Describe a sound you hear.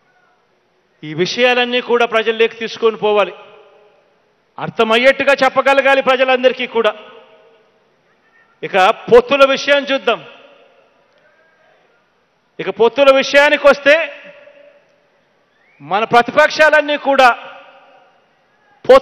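A young man sings into a microphone in short, drawn-out phrases with pauses between them.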